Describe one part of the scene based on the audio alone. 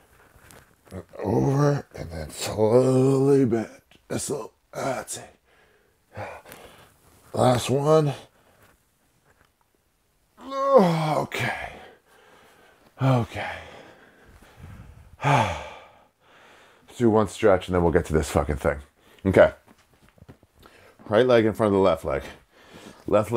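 A man speaks calmly and clearly, close to the microphone.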